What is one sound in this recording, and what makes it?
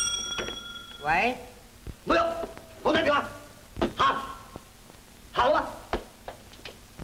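A woman speaks tensely and urgently, close by.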